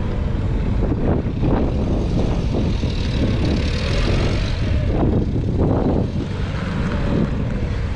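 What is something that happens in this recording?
A forklift engine hums steadily as the forklift drives around.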